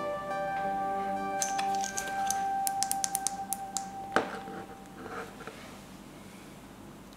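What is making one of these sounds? A small flashlight switch clicks.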